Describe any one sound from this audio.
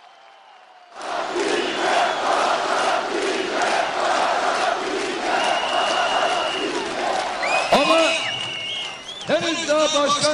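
A large crowd cheers and chants outdoors.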